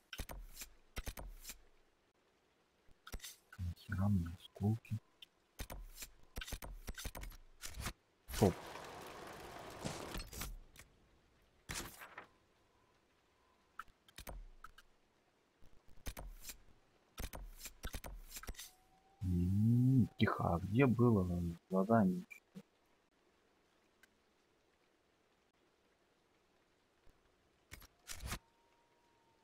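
Short menu clicks and soft whooshes sound again and again.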